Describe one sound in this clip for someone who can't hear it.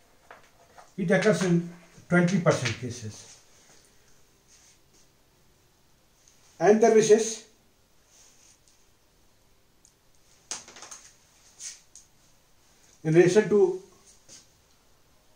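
A middle-aged man speaks calmly in short bursts, close by.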